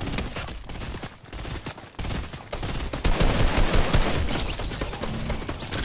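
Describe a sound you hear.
A burst assault rifle fires in a video game.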